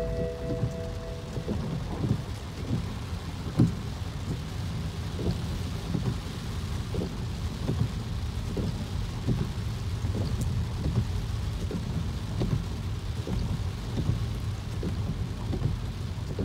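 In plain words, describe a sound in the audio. Heavy rain drums and patters on a car windscreen.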